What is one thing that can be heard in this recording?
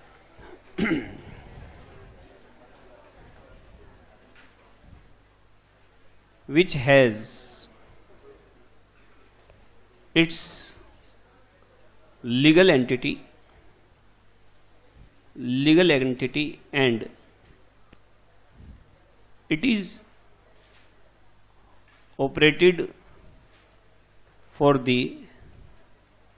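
A man speaks calmly in short phrases with pauses.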